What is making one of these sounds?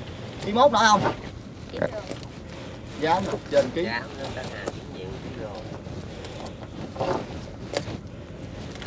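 A wet fishing net rustles and drips as it is hauled into a boat.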